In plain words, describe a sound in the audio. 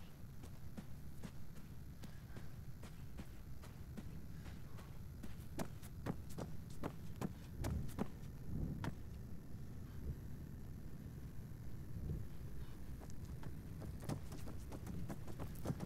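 Footsteps run quickly over dry, dusty ground.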